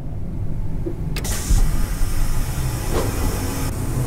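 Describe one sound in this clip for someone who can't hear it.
A vehicle door opens with a clunk.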